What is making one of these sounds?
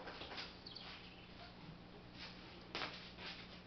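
A man's footsteps shuffle nearby as he walks away.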